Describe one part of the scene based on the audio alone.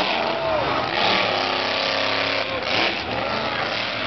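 Monster truck tyres crush cars with loud crunches.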